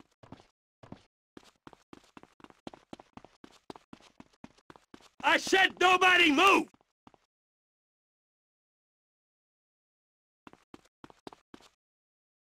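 Quick footsteps tap across a hard floor.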